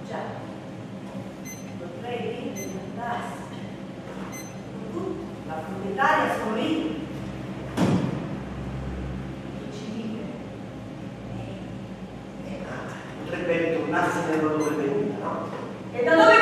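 A woman speaks in a theatrical voice, heard from a distance in an echoing room.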